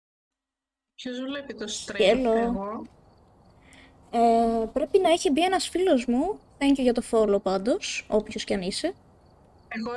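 A young woman talks close to a headset microphone.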